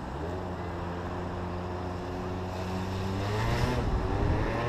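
A motorcycle engine idles with a steady low hum.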